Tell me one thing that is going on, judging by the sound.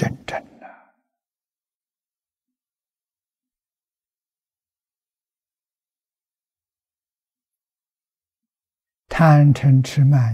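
An elderly man speaks slowly and calmly into a close microphone.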